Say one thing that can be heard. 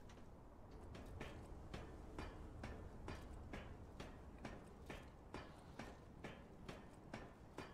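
Feet and hands clank steadily on metal ladder rungs.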